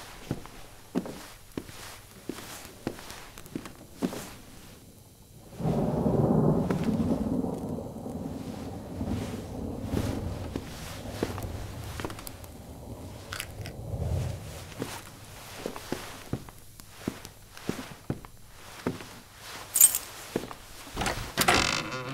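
Slow footsteps tap across a wooden floor.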